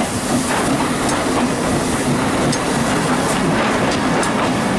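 Carriage wheels clatter over rail joints.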